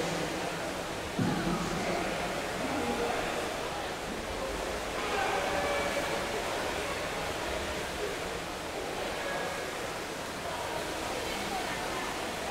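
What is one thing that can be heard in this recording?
Water rushes and gurgles in a low, muffled rumble, heard from underwater.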